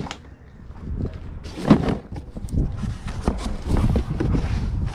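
A cardboard box rustles and scrapes as it is opened.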